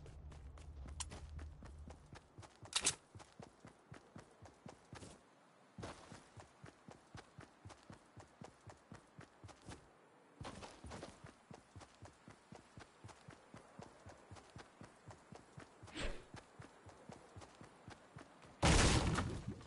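Footsteps patter quickly and evenly.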